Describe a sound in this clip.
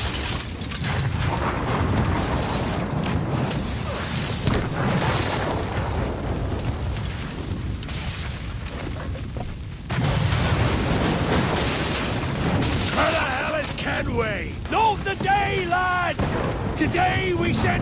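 Fire roars and crackles nearby.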